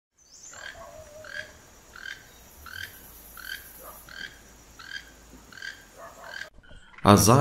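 A toucan croaks over and over in a steady rhythm.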